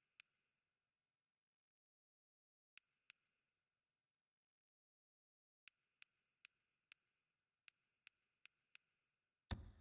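Short soft interface clicks tick now and then.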